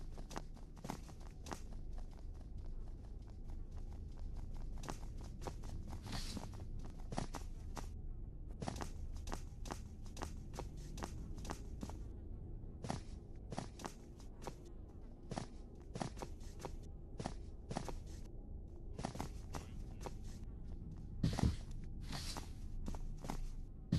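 Hurried footsteps thud on a concrete floor.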